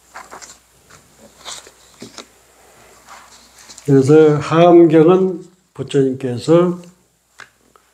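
A man speaks calmly into a microphone, close by.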